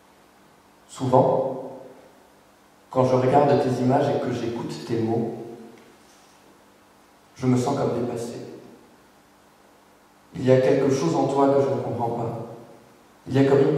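A man reads aloud into a microphone in short phrases with pauses.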